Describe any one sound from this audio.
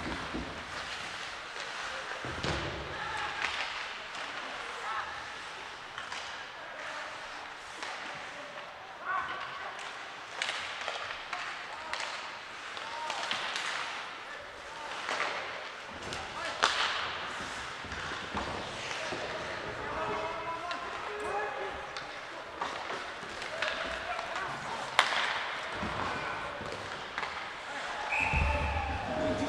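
Players shout to one another across the rink.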